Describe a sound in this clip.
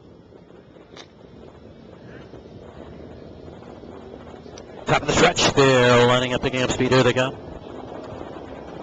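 Horses' hooves thud on a dirt track far off.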